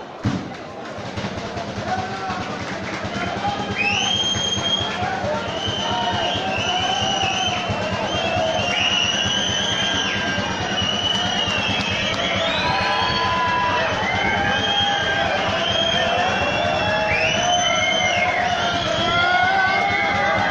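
A large crowd of fans sings and cheers loudly outdoors.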